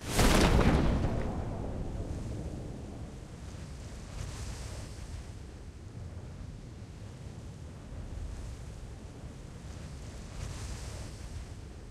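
Wind flutters softly through a parachute's canopy.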